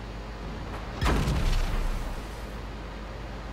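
A loud cannon blast booms and rings out briefly.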